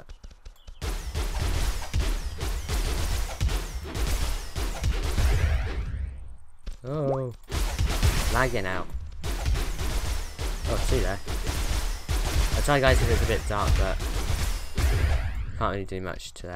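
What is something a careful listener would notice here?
Rapid sword blows thud against a creature.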